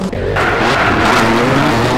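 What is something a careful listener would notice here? Tyres skid and crunch on the road.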